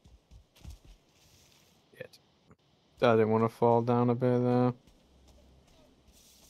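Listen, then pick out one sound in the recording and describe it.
Footsteps pad softly over grass.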